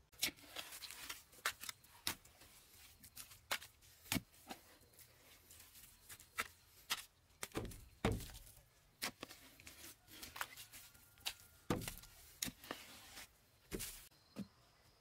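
A wooden pole thuds into wet clay, digging out a hole.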